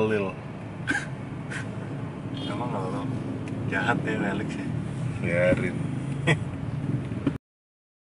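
A second man laughs nearby.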